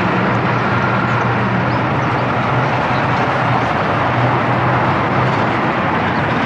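A heavy truck's diesel engine rumbles loudly as it drives past close by.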